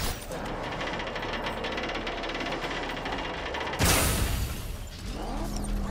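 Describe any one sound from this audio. A vehicle engine roars and rumbles.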